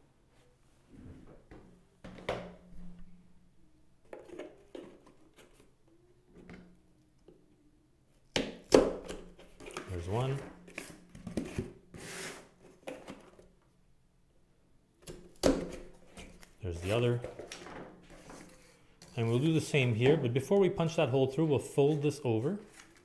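Cardboard scrapes and rustles as it is handled and folded.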